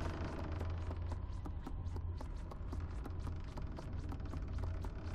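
Small bare feet run across wooden floorboards.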